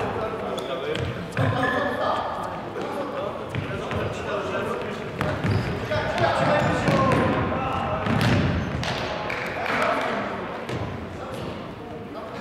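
A ball thumps as it is kicked.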